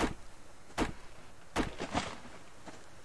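An axe chops into wood with sharp, heavy thuds.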